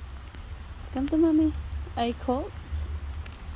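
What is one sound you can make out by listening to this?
A young child babbles close by.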